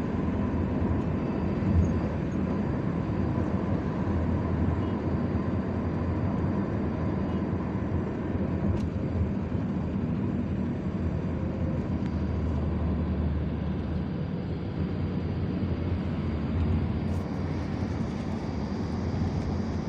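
A car drives steadily along a road, its engine and tyres rumbling from inside.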